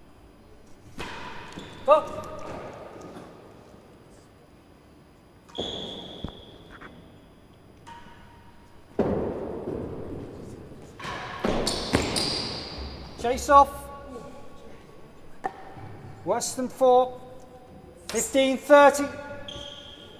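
A ball is struck hard by a racket and thuds off walls in a large echoing hall.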